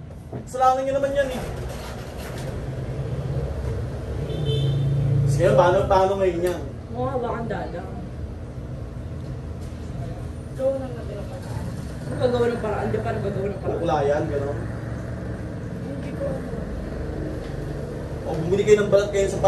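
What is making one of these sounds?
Young men and women talk casually nearby.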